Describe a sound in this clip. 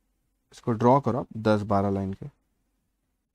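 A man speaks briefly and clearly into a microphone.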